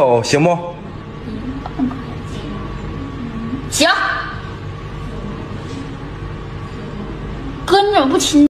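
A young woman speaks in a playful, sing-song voice close by.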